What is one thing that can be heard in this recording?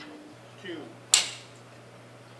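A clapperboard snaps shut with a sharp clack.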